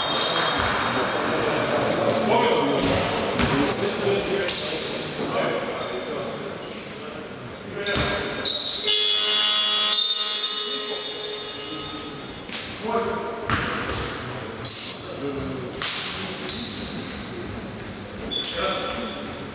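Basketball shoes squeak sharply on a wooden court in a large echoing hall.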